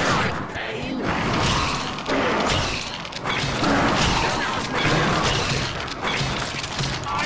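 Pistols fire in rapid bursts.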